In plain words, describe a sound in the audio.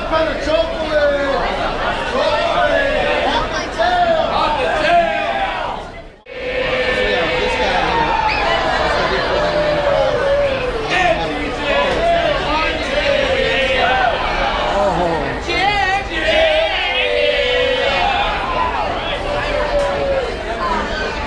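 A large crowd of men and women chatters and calls out in a busy, echoing hall.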